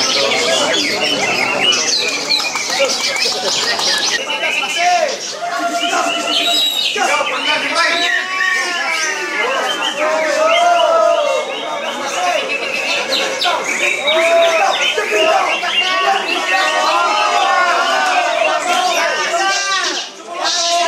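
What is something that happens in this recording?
Many caged songbirds sing and chirp busily all around.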